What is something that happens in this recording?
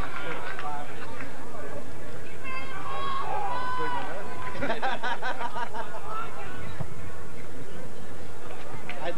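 Young men shout to one another across an outdoor field.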